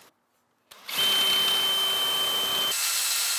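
A cordless drill whirs steadily as it bores into metal.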